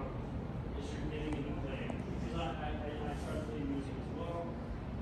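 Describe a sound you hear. A small group of musicians plays live in a large room with an echo.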